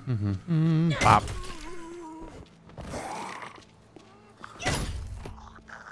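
A weapon strikes a body with heavy thuds.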